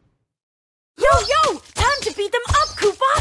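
Magic blasts and blows strike in a fast fight.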